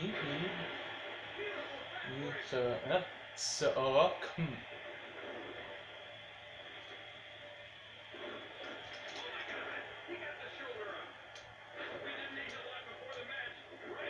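A wrestling video game plays through a television's speakers.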